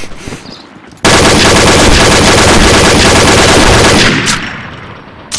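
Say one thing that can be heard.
An automatic rifle fires a long, rapid burst.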